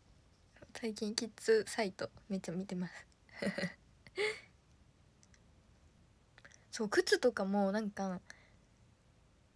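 A young woman speaks cheerfully and closely to the microphone.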